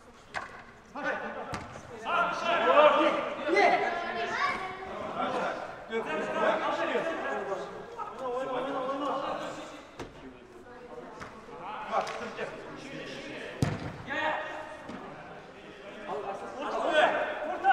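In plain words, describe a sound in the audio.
Young men shout to each other across the hall.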